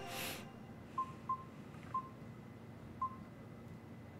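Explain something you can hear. Short electronic menu beeps sound a few times.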